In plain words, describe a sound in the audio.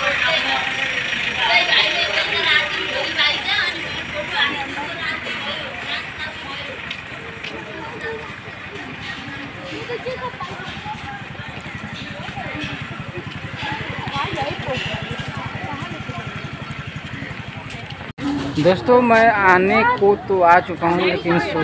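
A crowd of people chatters outdoors in the open.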